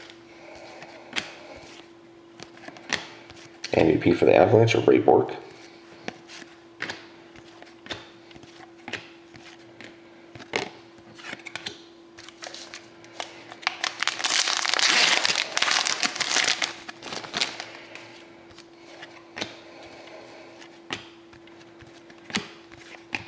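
Cardboard trading cards flick and tap as they are shuffled by hand.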